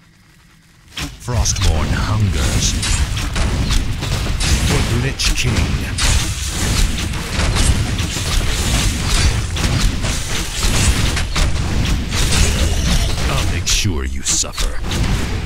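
Game battle sounds clash and crackle.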